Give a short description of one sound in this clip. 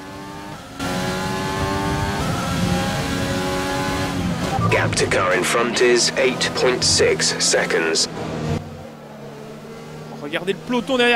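A racing car engine whines at high revs, shifting up and dropping as the car brakes into a corner.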